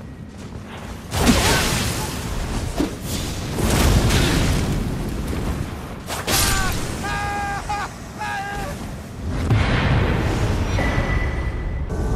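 A flaming blade swings and slashes with heavy impacts.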